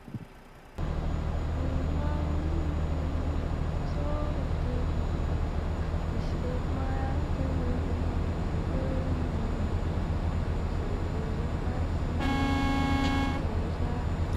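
Tyres roll steadily over a road.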